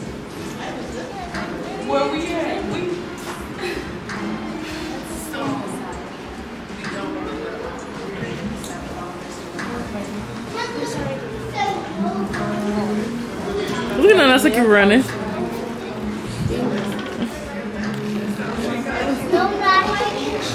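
Several people chatter nearby.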